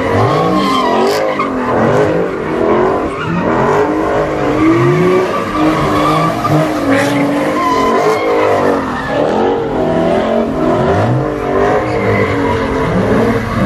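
Tyres screech as they spin on pavement.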